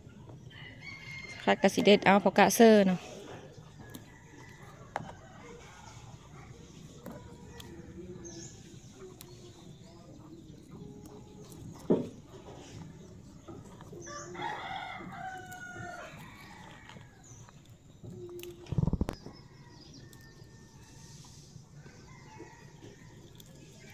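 Plant stalks rustle softly as a hand handles them.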